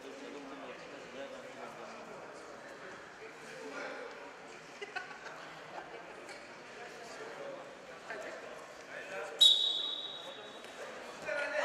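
Wrestlers' feet shuffle and scuff on a soft mat.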